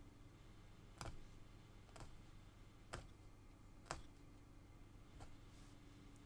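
A needle tool punches rhythmically through taut cloth with soft clicks.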